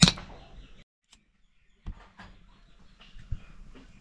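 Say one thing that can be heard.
A gas burner lights with a sharp click.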